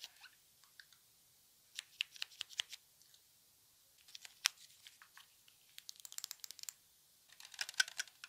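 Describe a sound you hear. A young woman whispers softly close to a microphone.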